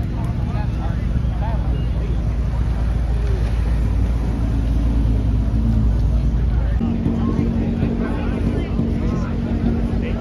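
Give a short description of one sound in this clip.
A crowd of young people chatters and shouts outdoors.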